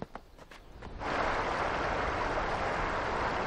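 Water rushes and churns over rocks.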